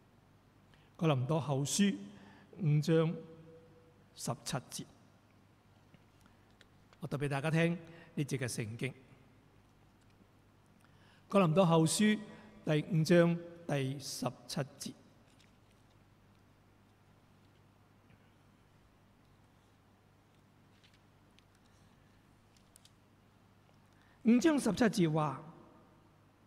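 A middle-aged man speaks calmly into a microphone, in phrases with long pauses.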